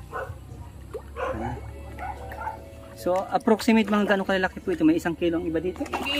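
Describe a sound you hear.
Fish splash and churn at the surface of the water.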